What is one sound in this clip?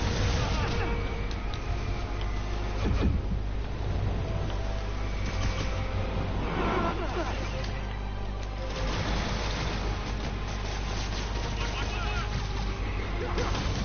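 Punches and impacts thud during a fight.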